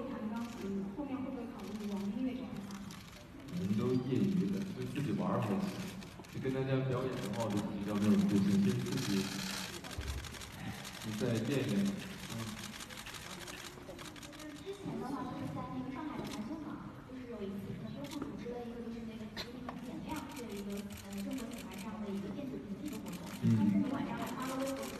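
A young man speaks calmly into a microphone through a loudspeaker in a large hall.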